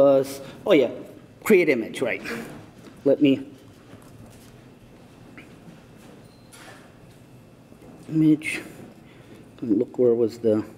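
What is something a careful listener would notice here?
A man speaks calmly through a microphone in a hall.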